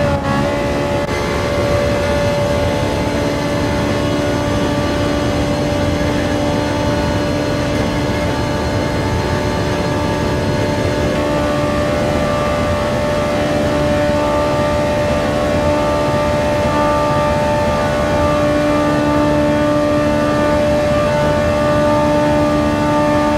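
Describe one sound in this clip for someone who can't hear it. A racing car engine roars at high speed, holding a steady high pitch.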